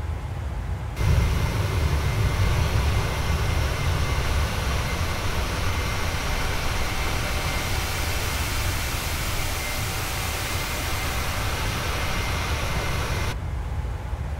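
Jet engines roar loudly and steadily from close by.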